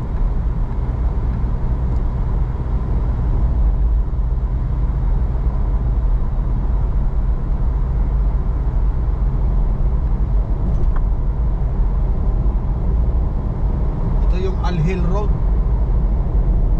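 A car engine hums steadily with a low road rumble from inside the car.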